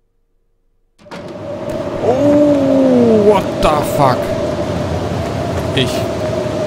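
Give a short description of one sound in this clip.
Wind howls in a snowstorm.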